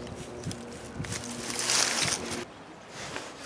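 A hand rustles against moss and dry twigs close by.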